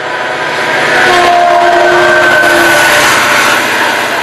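A train horn sounds briefly as the locomotive passes.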